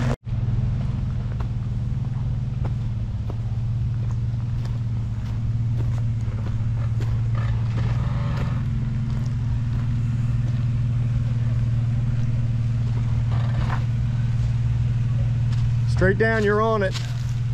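Tyres crunch slowly over rocks.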